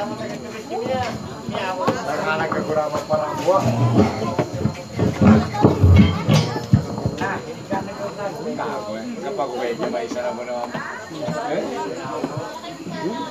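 Acoustic guitars strum and pluck a lively tune.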